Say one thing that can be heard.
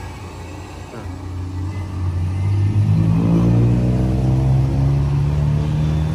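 A motorbike engine revs up nearby and pulls away.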